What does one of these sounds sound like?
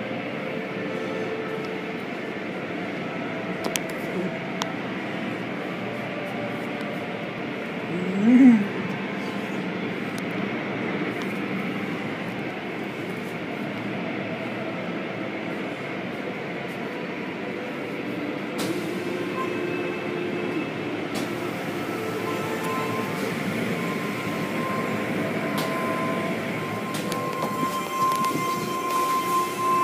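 A machine hums steadily in the background.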